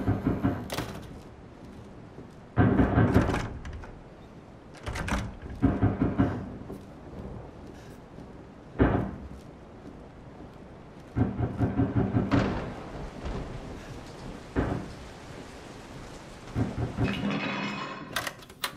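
Footsteps thud and creak on a wooden floor in bursts.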